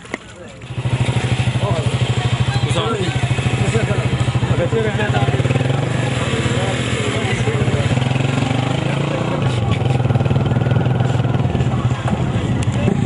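Several men talk loudly nearby outdoors.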